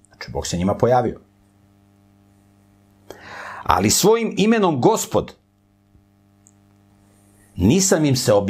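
An older man reads aloud calmly into a close microphone, in short bursts with pauses.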